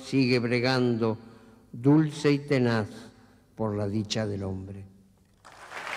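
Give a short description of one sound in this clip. An elderly man speaks slowly into a microphone.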